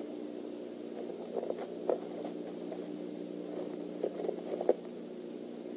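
A bird shifts in its nest, rustling dry twigs.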